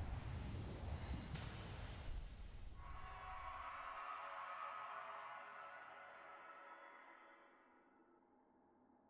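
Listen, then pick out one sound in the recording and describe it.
A sweeping, shimmering whoosh swells and slowly fades.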